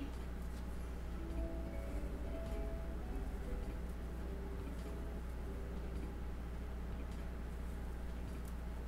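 Knitting needles click softly.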